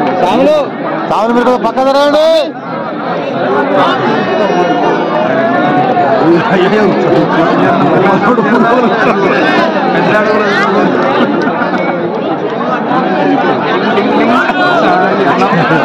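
A large crowd of men chatters and shouts loudly.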